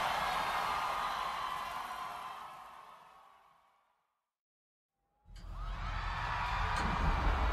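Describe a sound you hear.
A man sings through a microphone.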